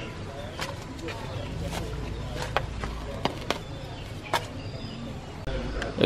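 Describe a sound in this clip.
A hoe thuds and scrapes into soil.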